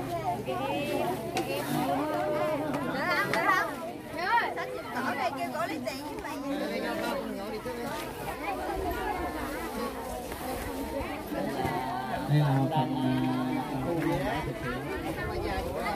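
Plastic sacks rustle as they are handled.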